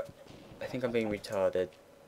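Blocks of wood are struck and crack with short dull knocks.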